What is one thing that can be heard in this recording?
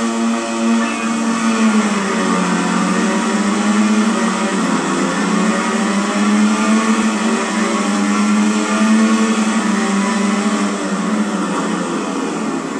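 Racing motorcycle engines whine loudly as they rev through the gears.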